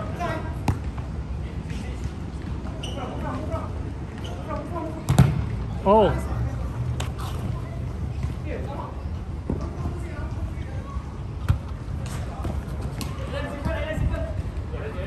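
A football thuds as players kick it on artificial turf.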